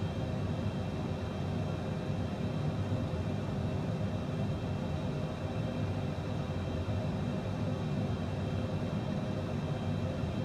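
Jet engines hum steadily with a low rumble.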